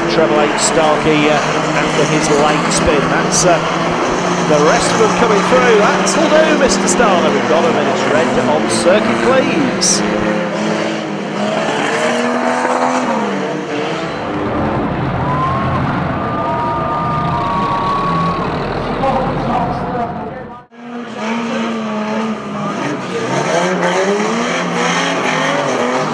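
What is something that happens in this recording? Stock car engines roar and rev loudly.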